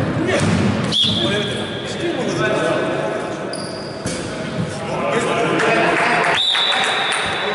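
Sneakers squeak sharply on a wooden court.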